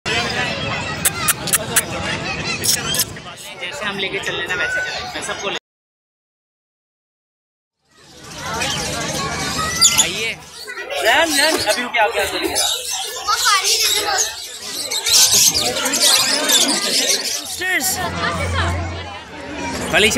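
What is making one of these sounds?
Parrots squawk and chatter close by.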